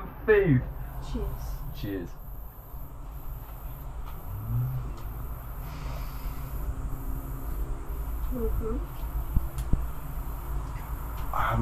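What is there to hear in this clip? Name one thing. Food crunches as two people bite and chew.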